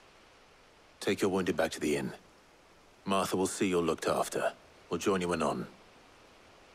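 A man gives instructions calmly.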